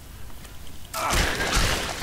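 A large creature roars loudly up close.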